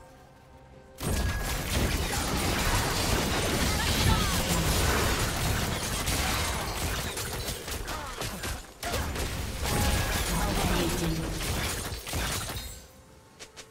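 Video game spells burst and weapons clash in a busy fight.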